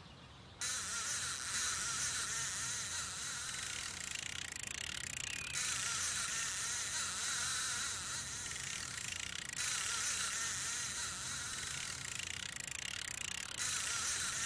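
A fishing reel whirs steadily as the line is reeled in.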